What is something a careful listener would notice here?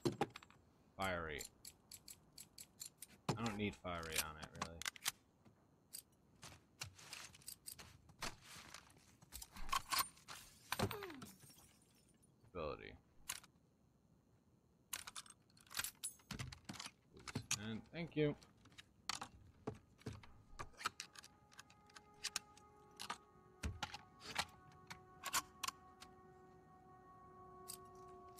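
Metal weapon parts click and clack as they are handled.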